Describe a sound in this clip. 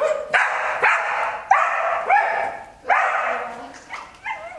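A woman shouts commands to a dog in an echoing hall.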